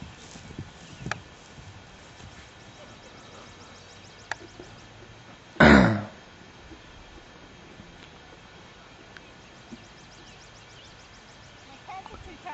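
A horse's hooves thud on grass as it trots.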